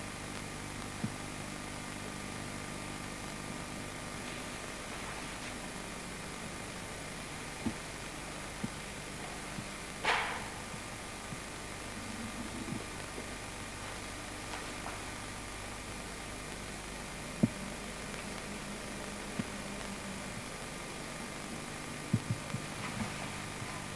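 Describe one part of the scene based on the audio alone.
Footsteps thud softly on a wooden stage.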